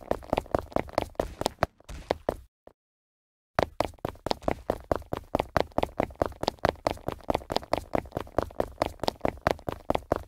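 Quick footsteps thud in a steady rhythm.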